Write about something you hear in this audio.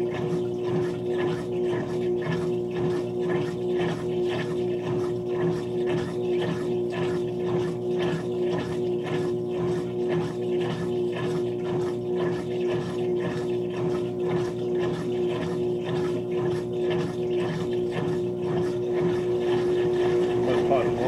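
Laundry swishes and thumps rhythmically inside a washing machine drum.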